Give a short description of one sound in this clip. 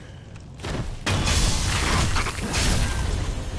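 A blade clashes and slashes loudly in combat.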